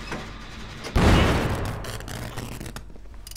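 A machine bursts with a loud bang and a crackle of sparks.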